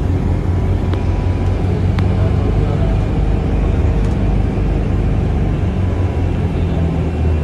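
A bus engine rumbles steadily from inside the moving bus.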